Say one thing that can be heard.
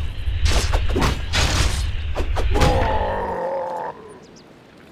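Weapons clash and strike in a fast battle.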